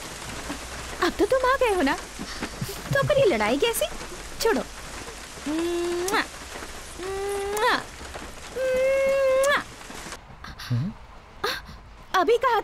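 A young woman sings in long, drawn-out notes.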